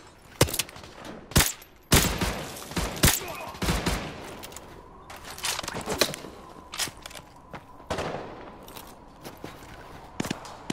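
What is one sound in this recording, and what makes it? Rifle shots crack loudly, one after another, with echoing booms.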